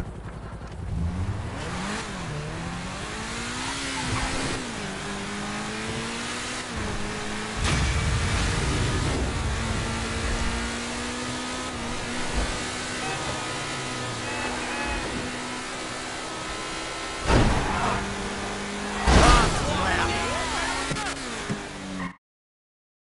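A car engine revs, rising and falling in pitch as the car speeds along.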